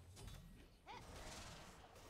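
A short chime rings out as a game character levels up.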